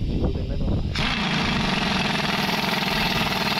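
An impact wrench whirs loudly.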